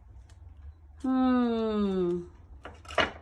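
A toddler lets out a long, falling vocal sound close by.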